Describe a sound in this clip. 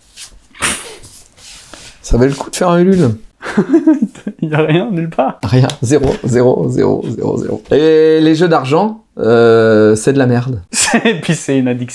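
A young man talks and laughs cheerfully close to a microphone.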